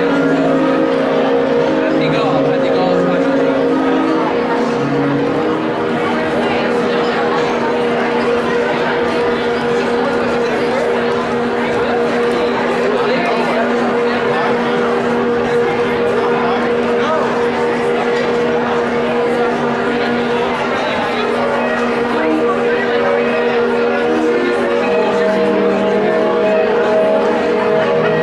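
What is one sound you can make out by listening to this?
A large audience murmurs and chatters in a big echoing hall.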